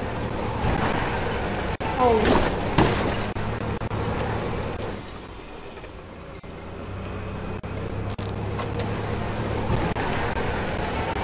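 A small motor cart engine hums steadily while driving.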